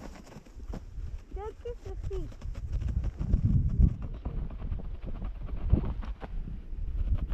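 A sled scrapes and hisses over packed snow.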